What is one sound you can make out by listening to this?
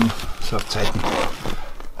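A plastic bag rustles close by.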